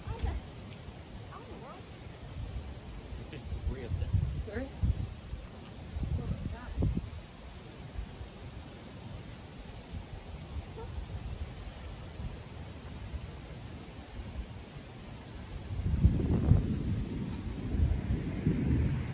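Wind gusts roar across the microphone outdoors.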